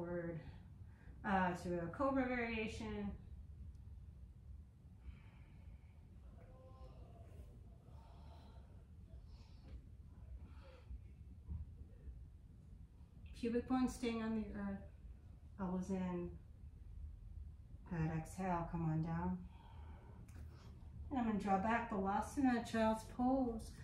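A woman speaks calmly and slowly, close by.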